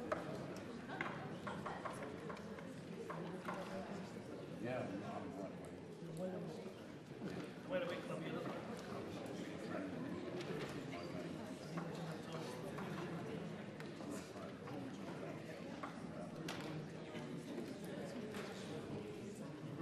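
A woman speaks steadily into a microphone in a large hall.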